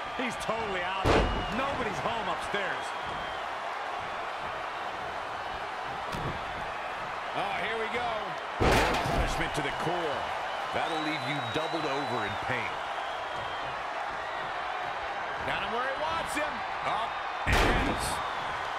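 Heavy thuds of bodies slam onto a wrestling ring mat.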